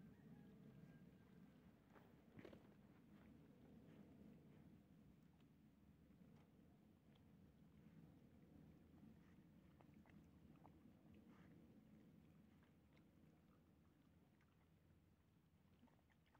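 Dogs chew and lap at food close by.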